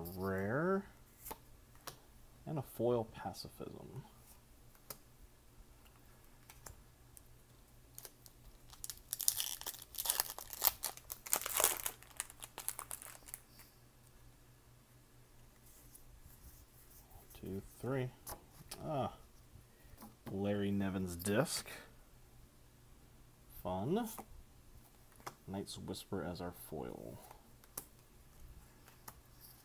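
Playing cards slide and flick against each other.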